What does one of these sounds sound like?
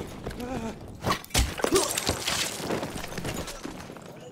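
A young man shouts in alarm close by.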